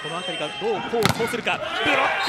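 A volleyball is struck hard with a loud smack.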